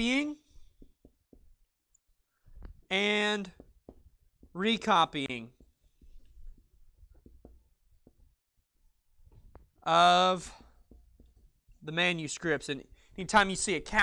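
A man speaks aloud in a small room, pausing between phrases.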